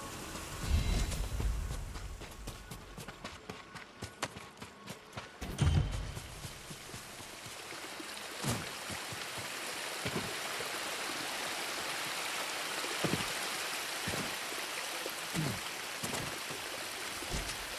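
Footsteps patter quickly over grass and rock.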